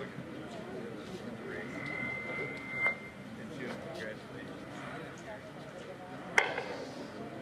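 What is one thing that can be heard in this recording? A small crowd murmurs and talks nearby.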